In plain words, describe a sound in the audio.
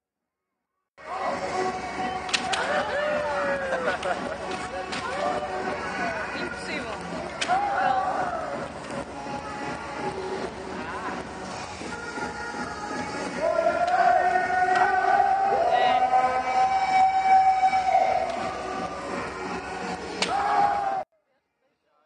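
Men shout loudly and forcefully.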